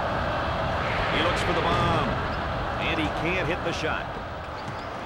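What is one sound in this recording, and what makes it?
Basketball shoes squeak sharply on a hardwood court.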